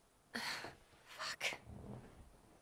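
A young woman swears under her breath close by.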